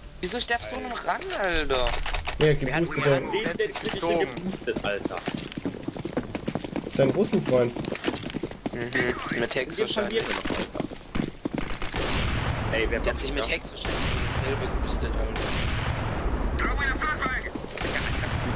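Footsteps shuffle on stone nearby.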